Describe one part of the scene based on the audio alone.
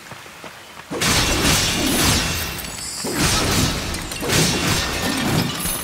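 Clay pots smash and shatter.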